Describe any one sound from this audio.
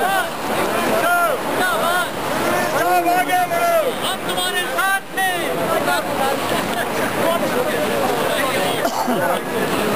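A crowd of men chatters and calls out loudly outdoors.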